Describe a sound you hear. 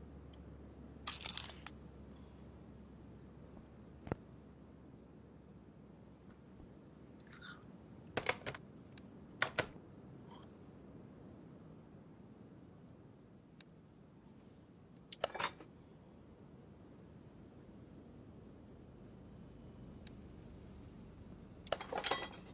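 Short game interface chimes and clicks sound now and then.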